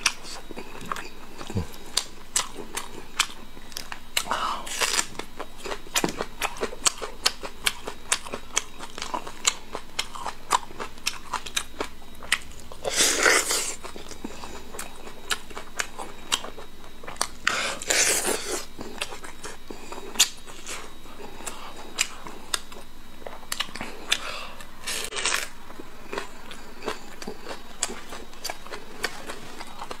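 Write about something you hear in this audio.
A man chews meat wetly with sticky lip smacks, close to the microphone.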